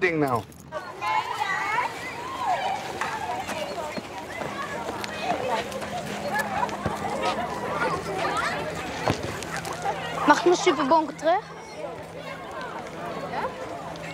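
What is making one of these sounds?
Children chatter and call out nearby outdoors.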